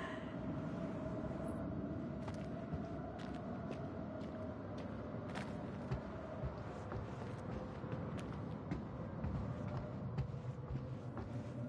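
Footsteps creak on wooden boards.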